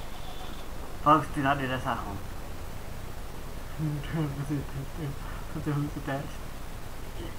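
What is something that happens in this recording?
A man talks casually, close to a microphone.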